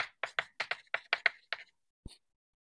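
Chalk taps and scratches quickly on a board.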